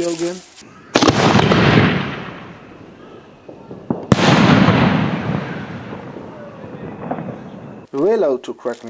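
Fireworks burst with loud booms that echo and fade.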